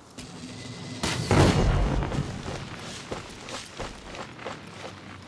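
Flames roar in a fiery blast.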